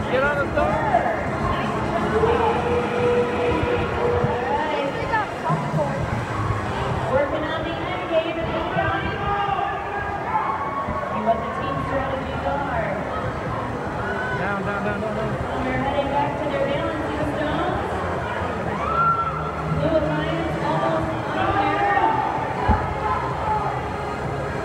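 A crowd of people chatters and calls out all around in a large echoing hall.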